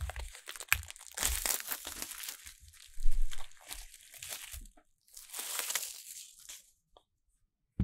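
Plastic wrapping crinkles and rustles as hands peel it off.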